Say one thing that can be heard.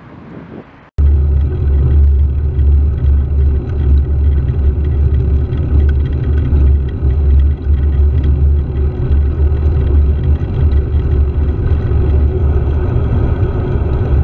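A motorcycle engine rumbles low and steady while riding.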